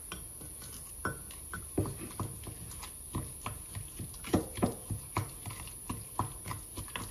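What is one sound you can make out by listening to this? A wooden spoon stirs a thick sauce, clinking against a glass bowl.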